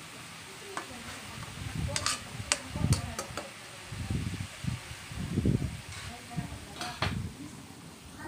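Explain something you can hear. A metal spatula scrapes and clatters against a wok.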